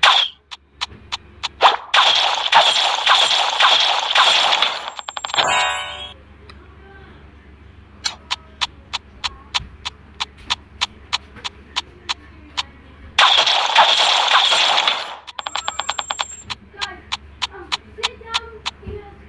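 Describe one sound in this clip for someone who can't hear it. Short sharp arrow shots snap out in quick, even succession.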